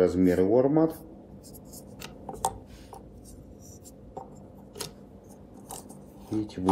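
Small plastic and metal parts click and tap softly as they are handled.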